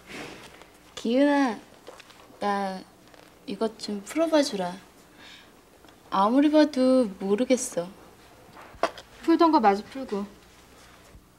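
A teenage girl speaks softly and animatedly close by.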